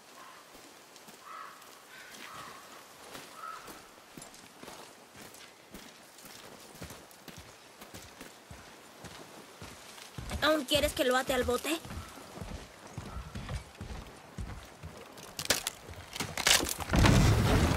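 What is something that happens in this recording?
Footsteps crunch on dirt and wooden planks.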